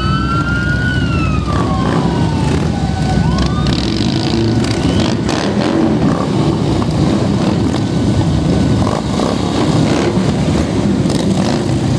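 A long line of motorcycles rumbles by up close, engines throbbing loudly.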